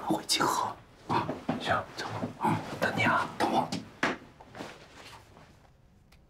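A young man speaks with surprise, close by.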